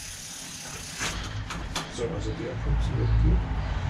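Metal tools clink sharply against a bicycle.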